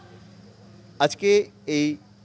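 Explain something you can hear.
A man speaks into microphones outdoors.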